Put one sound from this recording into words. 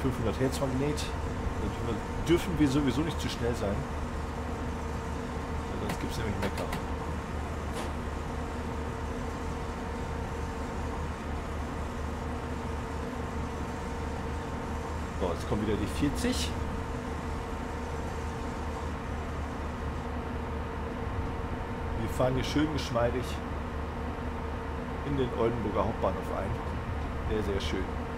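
An electric locomotive hums steadily as it runs.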